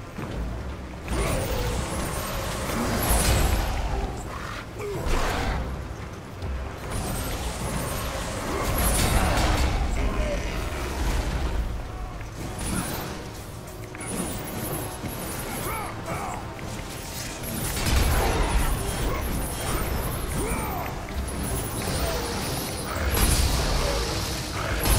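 Weapons clash and thud in a fierce fight.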